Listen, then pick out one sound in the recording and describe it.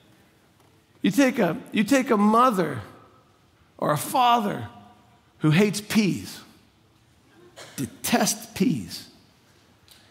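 A middle-aged man speaks with emphasis through a headset microphone, in short bursts with pauses.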